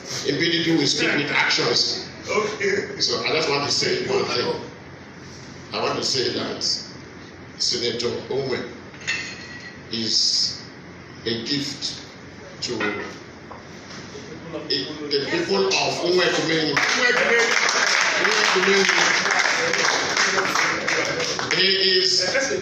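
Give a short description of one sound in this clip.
A middle-aged man speaks with animation through a microphone and loudspeaker, in short bursts with pauses.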